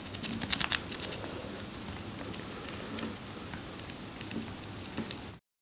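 A chipmunk nibbles and crunches on pomegranate seeds with quick, tiny clicks.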